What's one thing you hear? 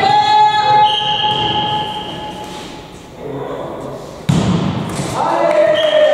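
A volleyball is struck with a hard slap.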